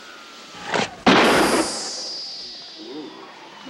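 A gunshot cracks loudly indoors, followed by a whining ricochet.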